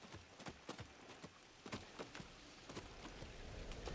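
Footsteps knock on a wooden ladder and boards.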